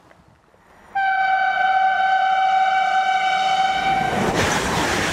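A train sounds a loud, steady horn.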